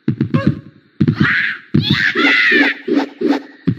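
A game character lets out short, high voiced cries as it jumps.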